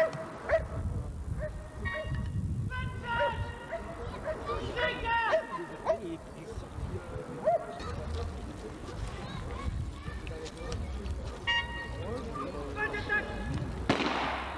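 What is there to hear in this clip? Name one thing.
A man calls out sharp commands outdoors.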